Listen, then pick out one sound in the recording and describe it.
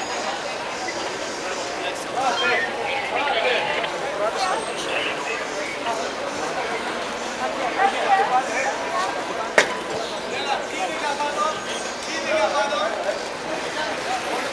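A crowd of men talk and murmur nearby.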